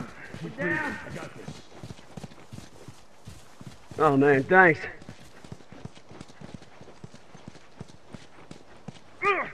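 Footsteps tread quickly over the ground.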